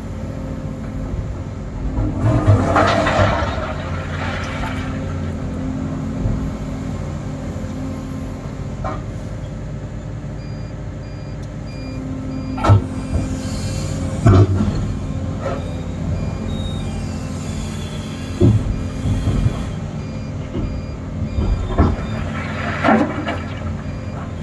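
An excavator engine rumbles steadily from inside the cab.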